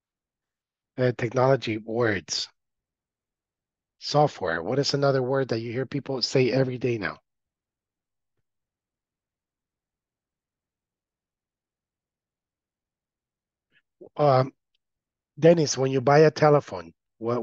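A young man speaks calmly over an online call, in short bursts with pauses.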